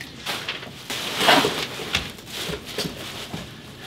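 Plastic wrapping rustles.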